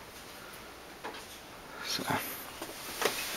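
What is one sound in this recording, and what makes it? A foam sheet rustles and flaps as a hand handles it.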